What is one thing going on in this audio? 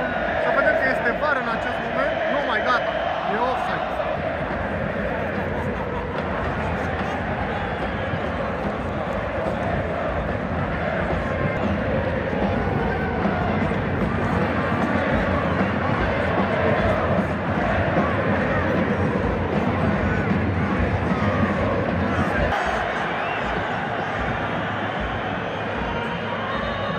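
A large stadium crowd chants and sings loudly, echoing all around.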